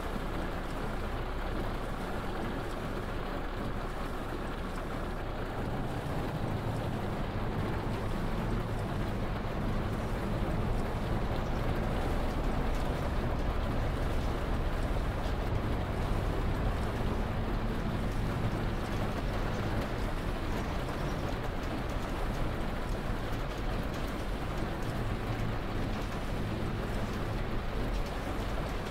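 Windscreen wipers swish back and forth.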